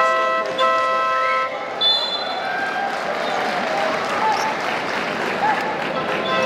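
A large crowd murmurs and cheers in a large echoing hall.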